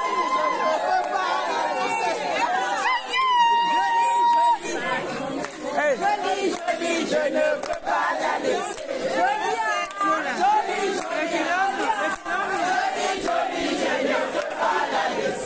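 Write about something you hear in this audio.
A crowd of men and women sings loudly close by.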